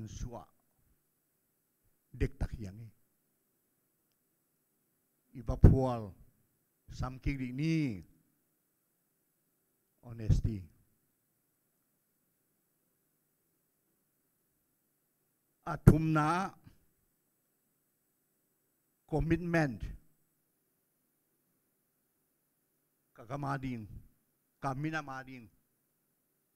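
An elderly man speaks slowly into a microphone, in short phrases with long pauses, heard through a loudspeaker.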